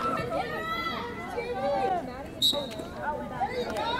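Lacrosse sticks clack together during play.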